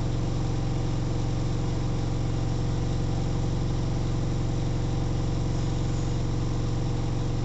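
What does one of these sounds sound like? Water sloshes inside a washing machine drum.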